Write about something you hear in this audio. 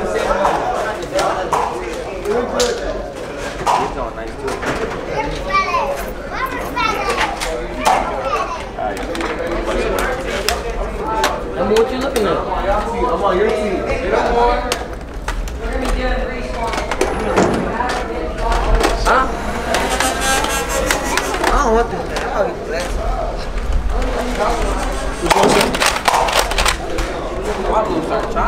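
Foam dart blasters snap as they fire.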